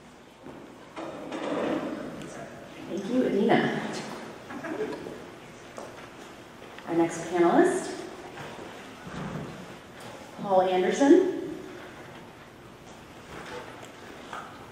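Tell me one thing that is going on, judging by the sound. A young woman speaks calmly through a microphone in an echoing hall.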